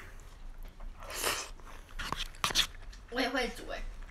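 A young woman chews food.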